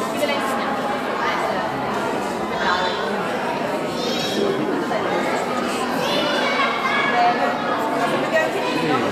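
Many young children chatter and call out close by.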